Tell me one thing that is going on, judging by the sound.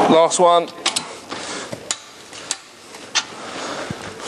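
A ratchet wrench clicks sharply.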